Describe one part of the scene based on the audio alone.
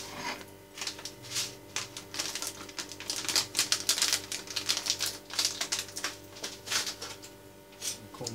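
A plastic packet crinkles and rustles.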